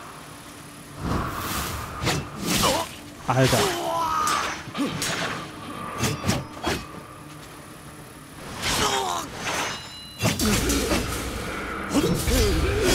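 Sword blows whoosh and clash in a fight.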